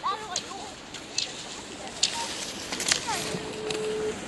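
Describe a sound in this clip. Ski poles click against the snow.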